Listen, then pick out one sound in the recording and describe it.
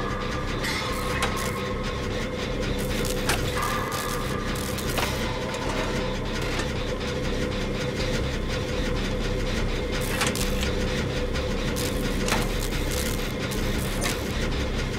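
A machine rattles and clanks steadily.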